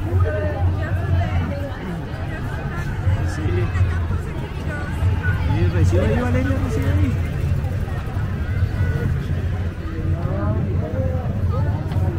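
A crowd of people chatter and call out nearby outdoors.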